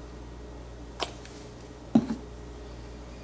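A bottle is set down with a knock on a wooden surface.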